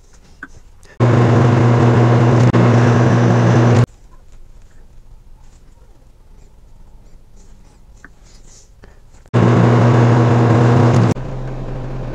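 A lathe motor hums loudly as the chuck spins.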